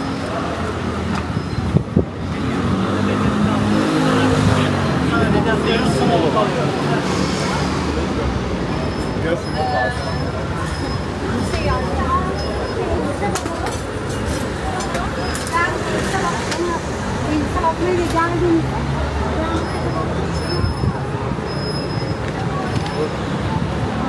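People chatter nearby on a busy street.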